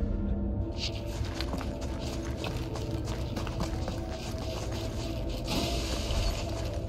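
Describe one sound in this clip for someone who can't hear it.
Footsteps run quickly over rough stone.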